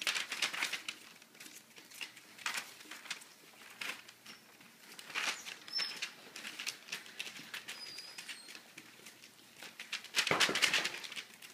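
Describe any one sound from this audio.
Paper rustles and crinkles under small paws.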